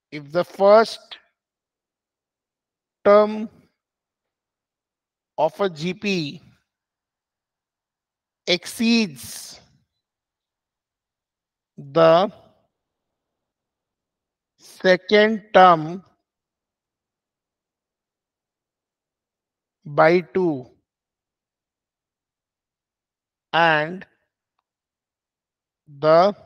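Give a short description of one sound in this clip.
A man speaks slowly and calmly into a close microphone, pausing between short phrases.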